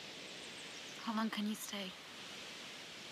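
A young woman speaks briefly and quietly.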